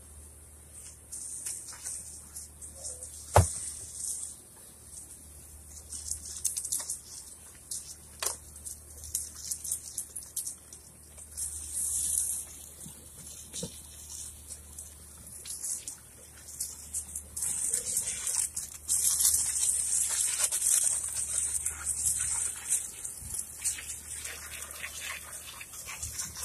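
A pressure washer sprays a hissing jet of water in bursts.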